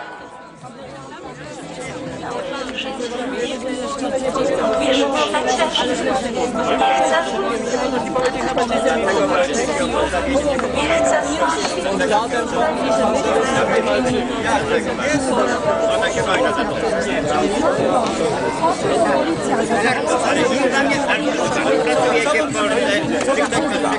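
A crowd of men and women talk and shout over one another outdoors.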